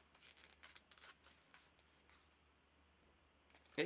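Plastic packaging rustles and clicks in a man's hands.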